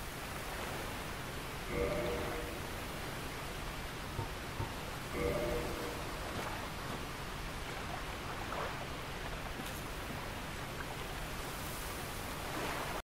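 A waterfall rushes steadily in the background.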